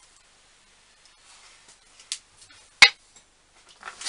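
A mug clinks as it is set down on a bench.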